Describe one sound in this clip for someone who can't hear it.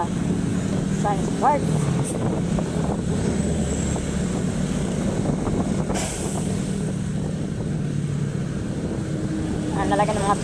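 Traffic roars past on a busy road.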